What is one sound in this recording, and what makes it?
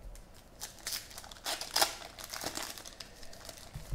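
Foil wrapping crinkles and tears as hands open a pack.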